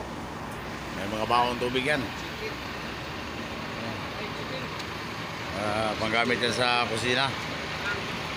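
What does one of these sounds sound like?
A man speaks nearby in a calm voice.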